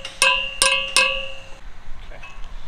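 A hammer strikes a metal post with ringing clangs.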